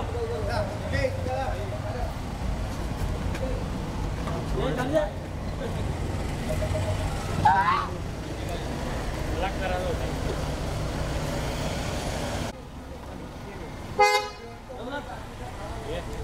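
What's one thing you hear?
Men shout and call out outdoors.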